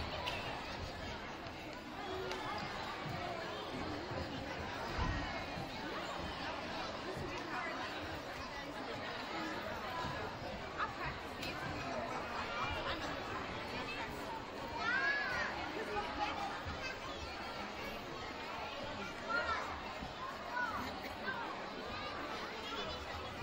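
Children shout and squeal with excitement.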